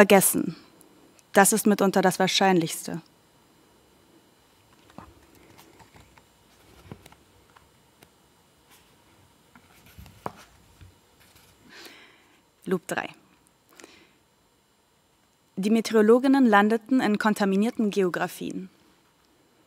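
A young woman reads aloud calmly into a microphone, with pauses.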